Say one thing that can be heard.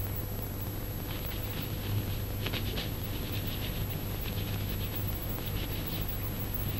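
Hands rub and scratch briskly over a man's hair.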